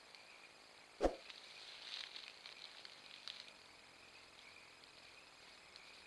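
Dry grass rustles softly under a large animal's paws.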